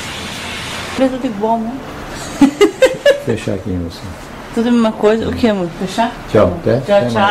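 A woman talks casually close by.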